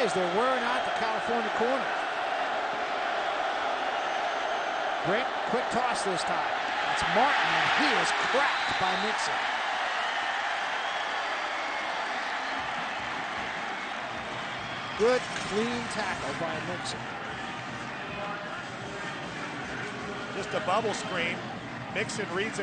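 A large crowd roars and cheers outdoors, swelling loudly for a moment.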